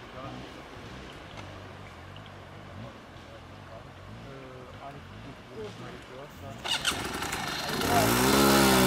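A dirt bike engine idles with a low putter.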